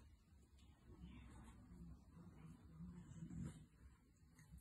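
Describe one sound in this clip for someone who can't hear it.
A dog paws and scratches softly at a cushion.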